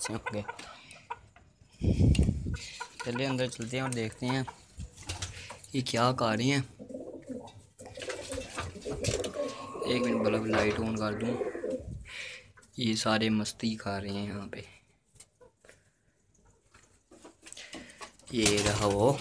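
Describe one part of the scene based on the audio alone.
Pigeons coo in low, rolling bursts close by.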